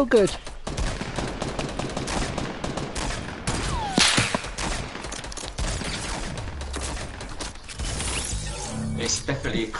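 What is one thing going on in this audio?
Gunshots crack in a game.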